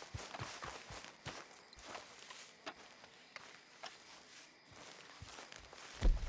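Footsteps crunch on grass.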